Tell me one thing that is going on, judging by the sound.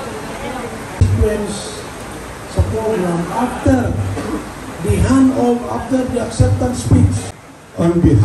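A man speaks loudly into a microphone through a loudspeaker, with animation.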